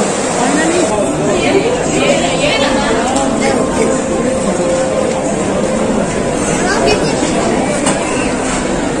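Outdoors, a large crowd murmurs and talks at a distance.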